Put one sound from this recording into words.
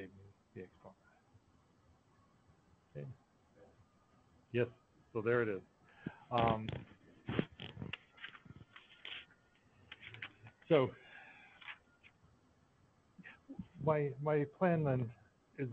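A man speaks calmly and haltingly through an online call.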